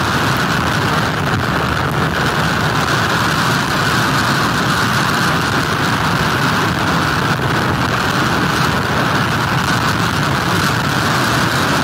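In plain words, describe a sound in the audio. Heavy surf crashes and rumbles onto the shore.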